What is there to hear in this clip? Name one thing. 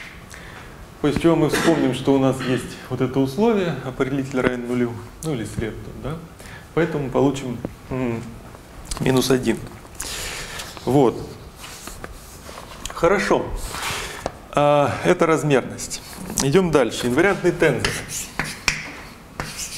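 A young man lectures calmly.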